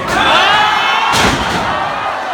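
A wrestler's body slams onto a ring mat with a loud thud.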